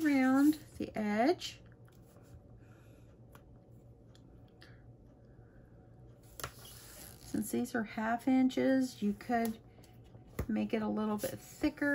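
Fingers press and rub tape onto the edge of a sheet of cardstock.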